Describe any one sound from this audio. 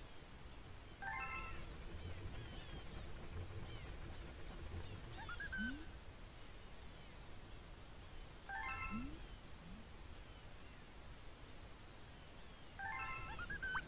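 A bright game chime plays in short rising runs.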